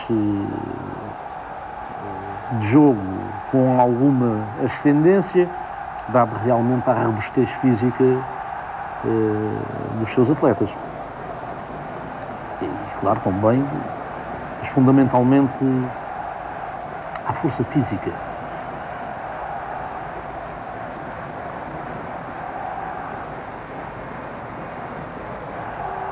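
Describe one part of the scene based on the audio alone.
A large crowd murmurs steadily in a big open stadium.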